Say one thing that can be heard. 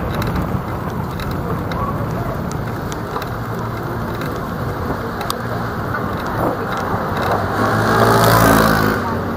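Traffic rumbles steadily along a city street.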